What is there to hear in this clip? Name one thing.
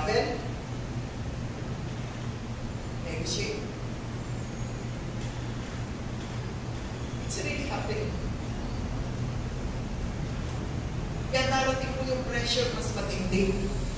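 A woman speaks into a microphone through loudspeakers, pausing often.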